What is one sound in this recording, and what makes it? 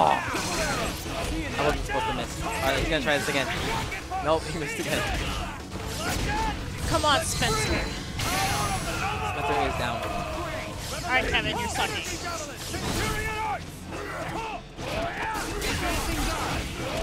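Punches and energy blasts crash and boom rapidly.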